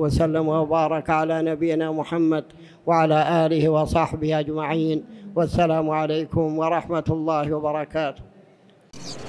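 An elderly man recites in a melodic voice through a microphone.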